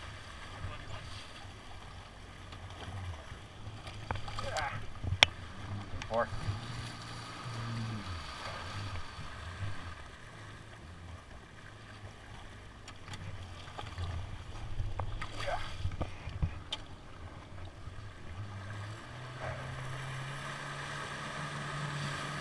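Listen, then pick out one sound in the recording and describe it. Water splashes against a jet ski's hull.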